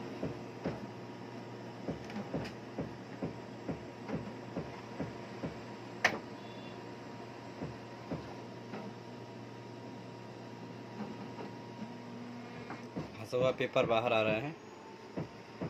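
A printer hums steadily.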